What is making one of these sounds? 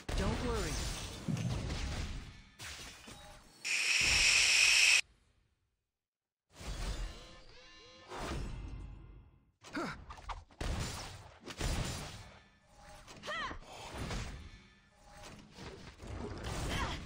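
Loud blasts and impacts crash in rapid bursts.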